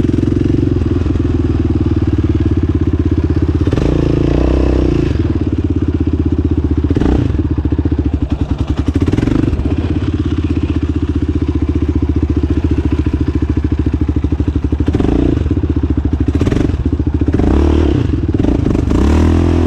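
Tyres crunch and spray over loose dirt.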